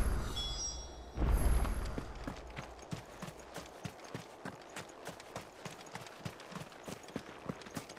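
Footsteps crunch over stone and grass at a steady pace.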